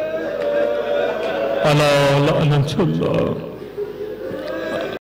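A man speaks with feeling into a microphone.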